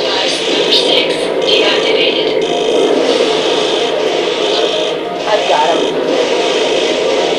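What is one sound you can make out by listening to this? A mechanical engine roars steadily.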